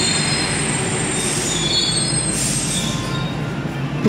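Train brakes squeal with high whines.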